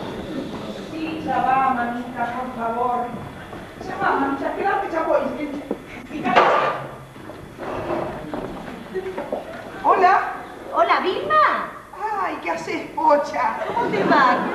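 A woman talks with animation into a telephone.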